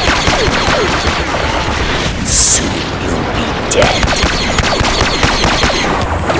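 Blaster rifles fire in rapid bursts of zapping shots.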